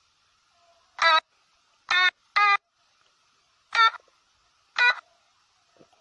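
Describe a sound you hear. Short electronic keyboard notes play one at a time.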